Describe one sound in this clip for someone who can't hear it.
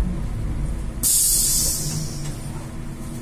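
A bus's air brakes hiss briefly as the bus comes to a stop.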